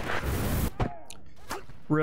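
A flamethrower roars, spewing fire.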